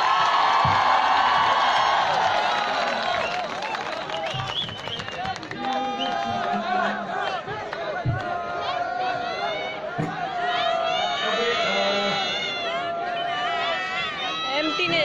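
An acoustic guitar plays through loudspeakers.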